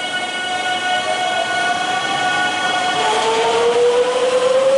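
An electric train pulls away, its motor whine rising in pitch.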